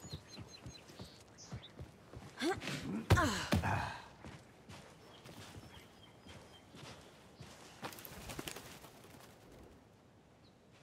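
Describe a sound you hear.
Footsteps crunch on gravel and dry leaves.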